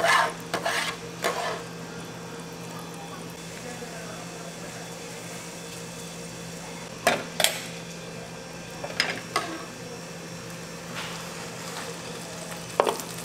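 A plastic spatula scrapes and taps against a metal pan.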